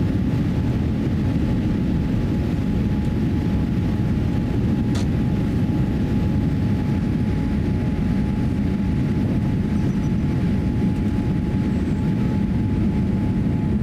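Jet engines roar steadily as an airliner climbs after takeoff.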